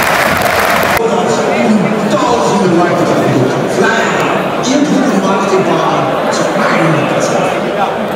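A stadium crowd sings and chants in unison.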